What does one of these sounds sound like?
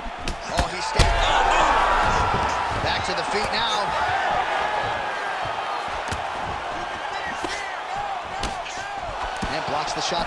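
A crowd cheers and roars loudly.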